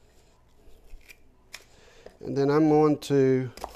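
A knife cuts through an onion onto a wooden board.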